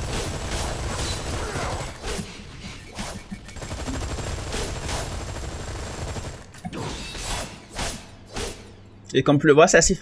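Gunfire crackles and blows land in a brief fight.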